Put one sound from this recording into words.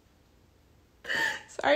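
A young woman sobs and cries out close by.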